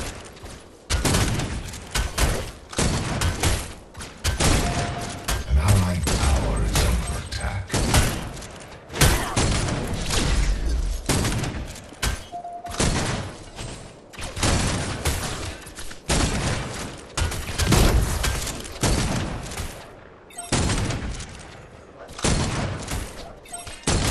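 Gunfire and blasts crackle in quick bursts.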